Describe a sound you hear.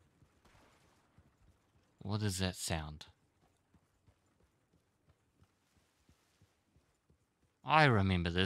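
A horse's hooves thud softly on grass at a walk.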